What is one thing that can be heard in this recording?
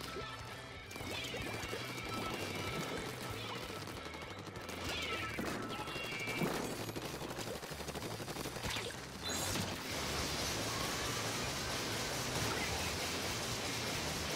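Paint splashes and splatters wetly.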